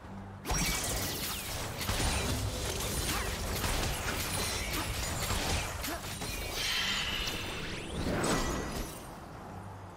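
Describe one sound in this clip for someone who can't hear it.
Spell effects whoosh, zap and crackle in a busy fight.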